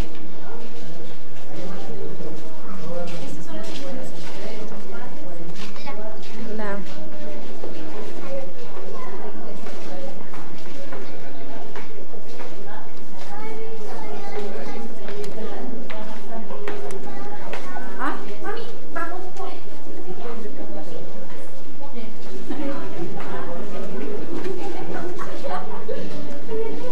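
Several adults and children chatter and murmur in an echoing hall.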